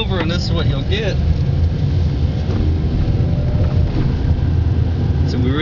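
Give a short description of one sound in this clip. A car engine rumbles steadily from inside the moving car.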